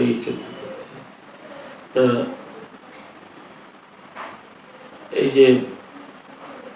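An elderly man speaks calmly in short phrases with long pauses, close to a microphone.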